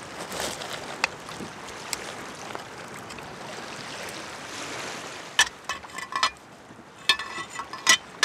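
A dry fish skin crackles and snaps as it is bent.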